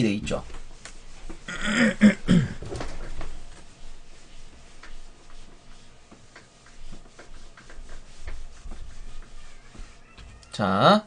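An eraser squeaks and rubs across a whiteboard.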